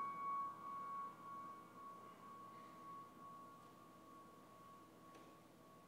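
A grand piano plays softly, its notes ringing out in a large hall.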